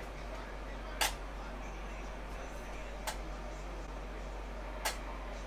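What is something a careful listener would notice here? Small metal parts click against a metal tray.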